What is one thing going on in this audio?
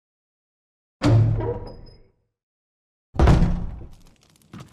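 A wooden door slams shut with a deep boom.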